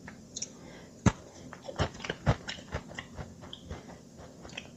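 A man chews and crunches a snack.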